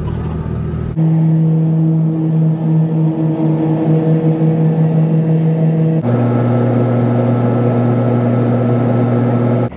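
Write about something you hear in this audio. A propeller aircraft engine drones loudly and steadily in flight.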